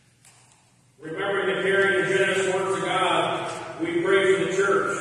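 A man sings at the altar in an echoing room.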